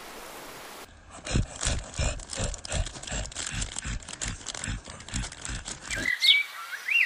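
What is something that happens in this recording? A dog paws and rustles through dry leaves.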